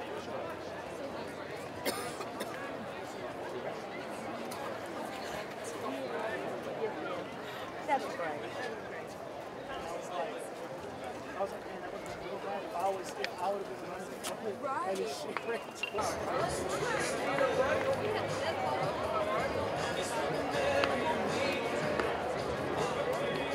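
A large outdoor crowd chatters and murmurs, growing louder later on.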